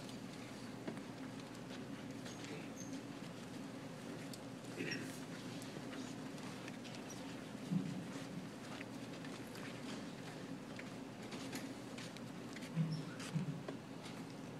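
Footsteps shuffle as people walk past.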